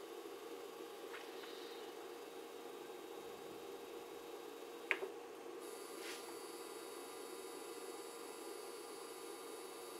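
A knob clicks as it is turned.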